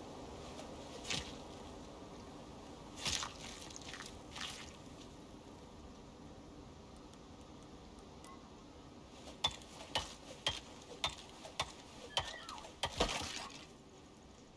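A knife cuts and slices into an animal carcass with wet, fleshy strokes.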